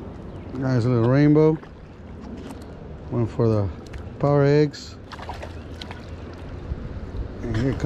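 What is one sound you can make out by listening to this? A fishing reel clicks as its line is wound in.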